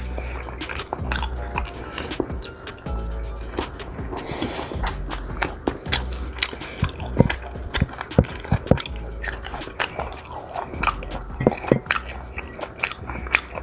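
A man chews food loudly and smacks his lips close by.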